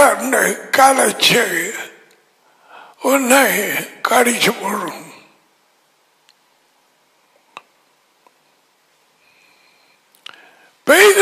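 An elderly man speaks calmly and closely into a headset microphone, with pauses.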